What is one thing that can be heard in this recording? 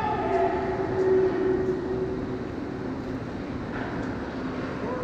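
Hockey sticks clack against pucks far off in a large echoing hall.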